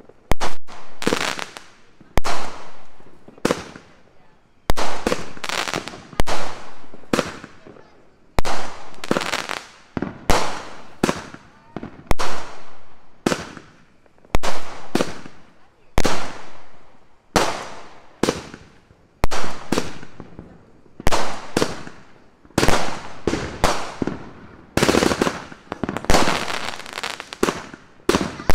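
Firework sparks crackle and fizz after each burst.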